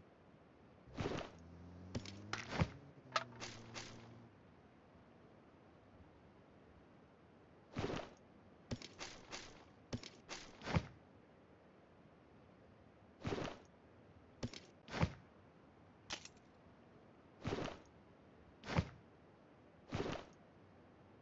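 Short rustling clicks sound as game items are picked up.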